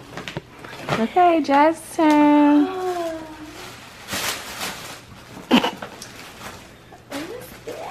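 Tissue paper rustles and crinkles as a gift bag is opened.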